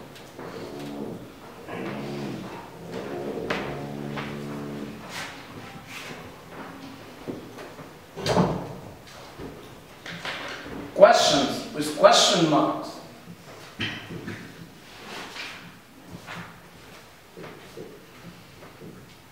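An elderly man lectures in a room with a slight echo, speaking with animation.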